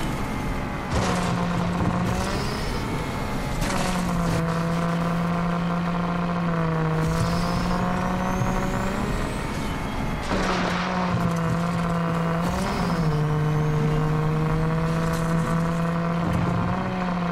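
Tyres skid and scrape over dirt.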